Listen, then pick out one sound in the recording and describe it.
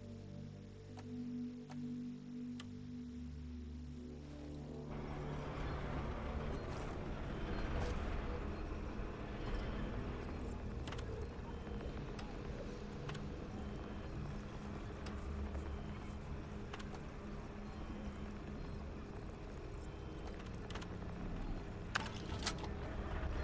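Interface clicks sound as menu options are selected.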